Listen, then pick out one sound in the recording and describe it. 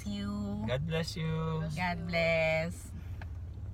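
A woman sings loudly close by.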